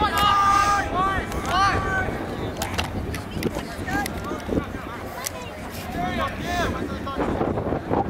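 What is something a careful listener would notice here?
Lacrosse sticks clack together.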